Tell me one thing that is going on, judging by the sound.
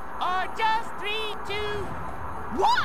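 A cartoon character's voice speaks in a high, squeaky tone.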